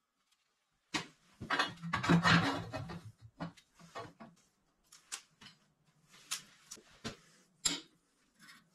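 Metal pipes clank and knock against a metal table.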